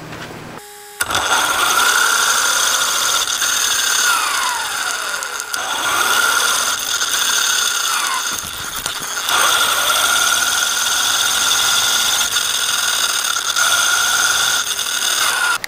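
A small electric motor whines loudly, its pitch rising and falling as a toy car speeds along.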